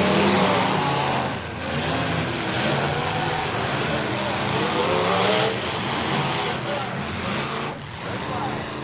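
Car engines roar and rev loudly outdoors.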